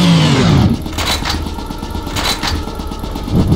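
Short metallic clicks of items being picked up sound twice.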